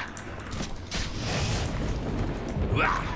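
A burst of fire roars.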